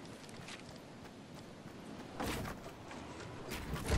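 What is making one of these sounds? Wooden walls thud and clatter into place in a video game.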